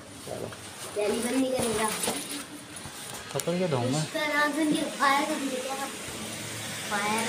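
A young girl speaks close by.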